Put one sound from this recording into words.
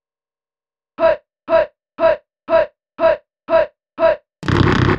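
Short retro video game sounds repeat in an even, quick rhythm.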